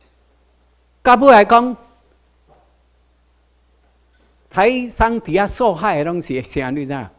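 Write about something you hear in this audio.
An elderly man speaks calmly into a microphone, heard over a loudspeaker in a hall.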